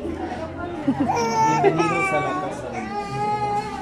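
A baby babbles and fusses nearby.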